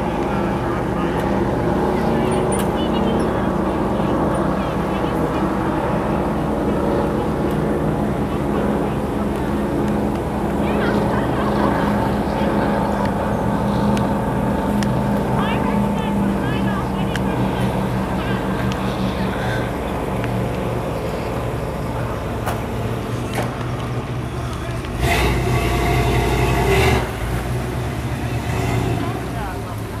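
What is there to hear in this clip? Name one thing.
A powerful speedboat engine roars steadily as a boat races across the water.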